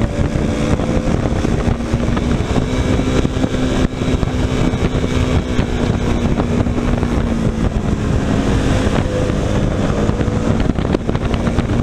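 A motorcycle engine hums steadily nearby.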